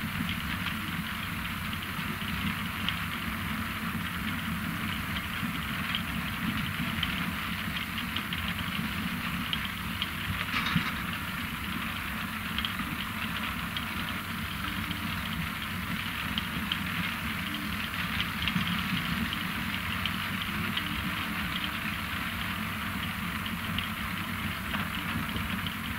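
Beets rattle and tumble off a conveyor onto a pile.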